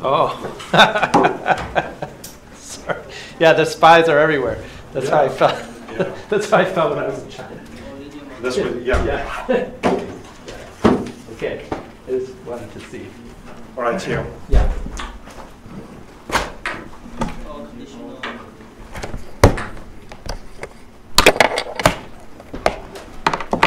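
A man lectures to an audience, heard through a microphone in a large room.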